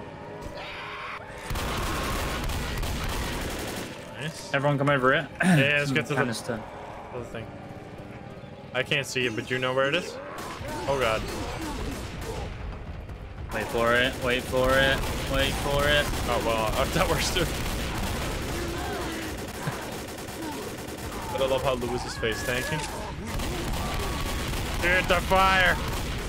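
Shotgun blasts boom from a video game.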